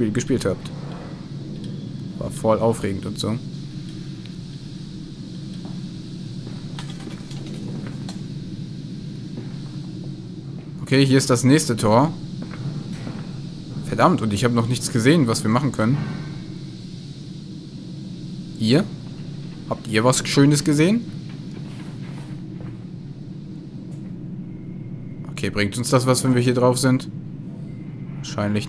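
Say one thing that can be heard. Footsteps thud slowly on wooden stairs.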